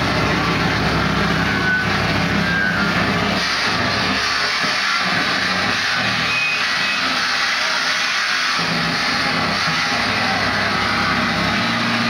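An electric guitar plays loudly through an amplifier.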